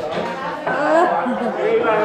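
A young woman laughs nearby.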